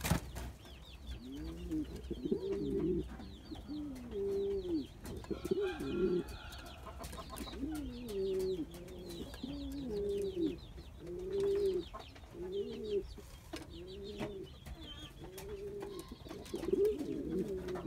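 A pigeon coos repeatedly, close by.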